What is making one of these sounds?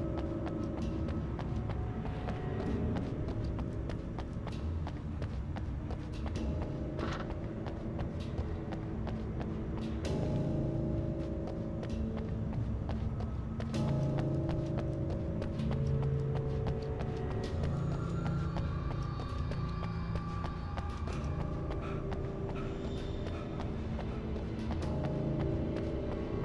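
Footsteps hurry across hard ground.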